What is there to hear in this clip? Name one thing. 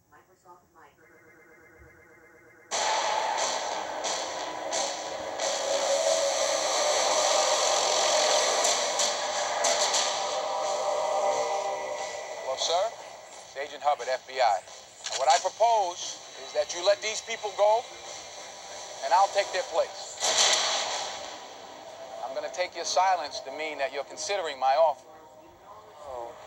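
A television plays a film soundtrack through its loudspeakers.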